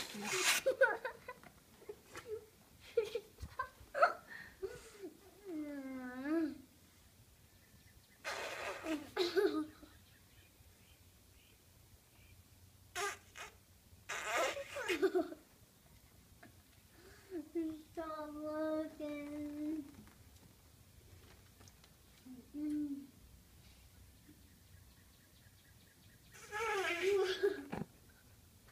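A young girl giggles and laughs loudly.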